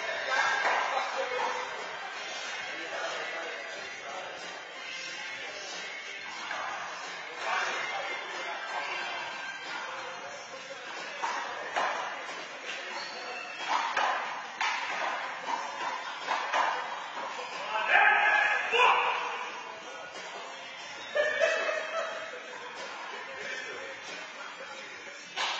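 Adult men talk and call out in an echoing court.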